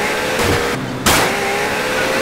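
A car crashes with a loud thud.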